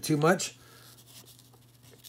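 A coin slides softly across paper.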